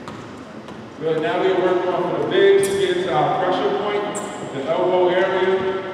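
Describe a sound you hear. A man speaks loudly and calmly nearby.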